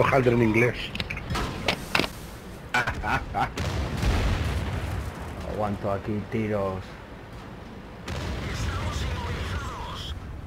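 Shells explode with loud, heavy blasts.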